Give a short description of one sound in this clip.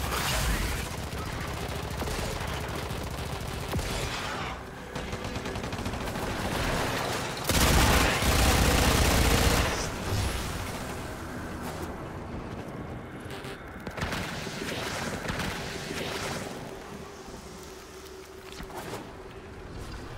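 Energy blades whoosh and crackle in quick bursts.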